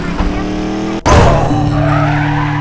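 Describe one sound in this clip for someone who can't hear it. A crash booms as the game character is hit.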